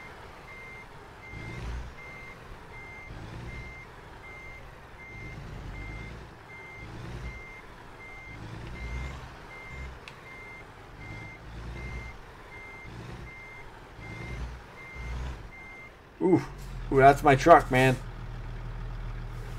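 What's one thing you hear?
A truck engine rumbles low.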